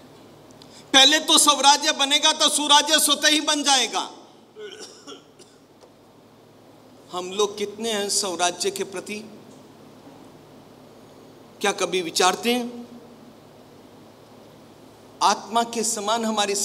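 An elderly man speaks calmly and expressively, with pauses.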